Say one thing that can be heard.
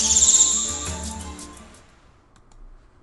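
A small bird sings a rapid, high-pitched trill.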